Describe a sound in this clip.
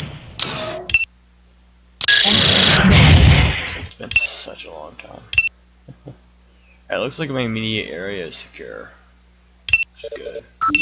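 Short electronic beeps sound as menu options are clicked.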